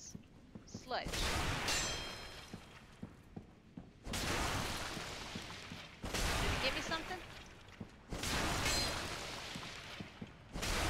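A sword swings and clashes in loud bursts.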